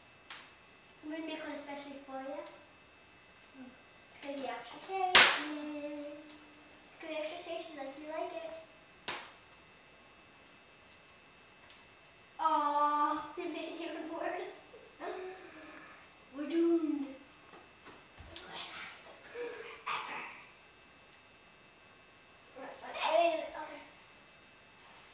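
A young child talks in short bursts nearby.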